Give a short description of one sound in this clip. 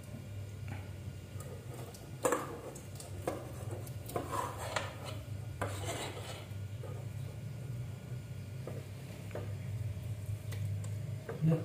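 A spatula scrapes and knocks against a metal pot.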